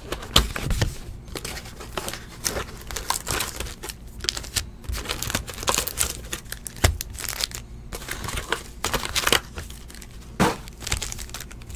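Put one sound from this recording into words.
Foil card packs crinkle and rustle as hands sort through them.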